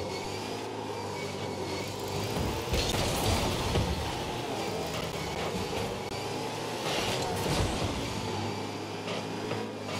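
Car engines hum and boost steadily.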